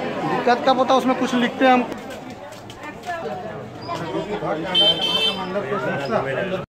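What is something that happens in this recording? Several people chatter nearby in a busy street.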